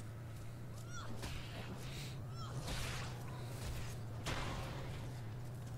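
Weapons swish and strike in a brief fight.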